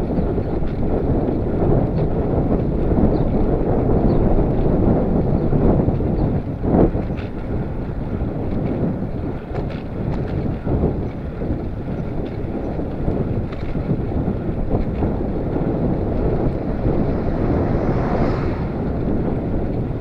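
Wind rumbles steadily past a moving bicycle.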